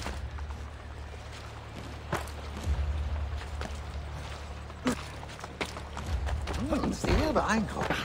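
Feet land with a thud after a jump.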